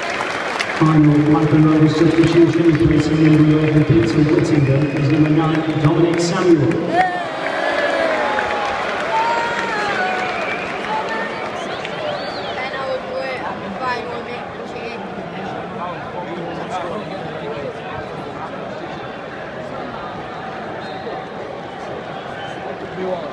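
A stadium crowd murmurs and cheers in a wide open space.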